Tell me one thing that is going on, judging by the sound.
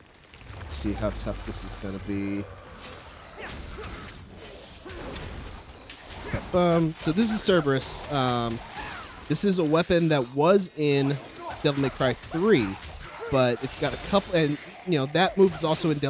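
A sword clangs and slashes in a fight.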